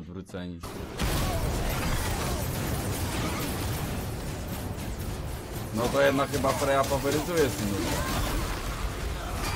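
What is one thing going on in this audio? Fiery blasts and clashing fight sounds roar.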